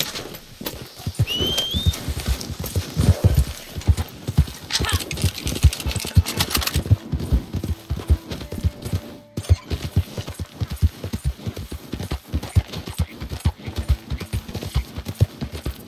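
A horse gallops with quick, heavy hoofbeats.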